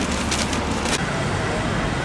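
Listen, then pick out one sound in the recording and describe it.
Traffic rumbles on a busy street below.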